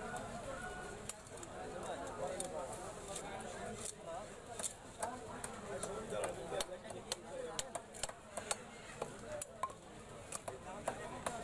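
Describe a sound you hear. A fish is scraped and chopped against a blade with repeated sharp knocks.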